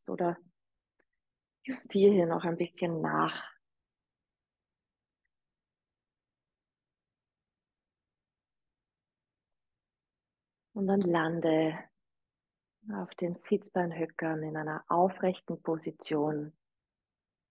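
A woman speaks calmly and softly through a microphone, with long pauses.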